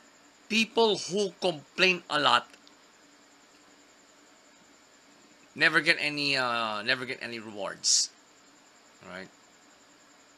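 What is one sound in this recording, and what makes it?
A man speaks close to a phone microphone, with pauses between phrases.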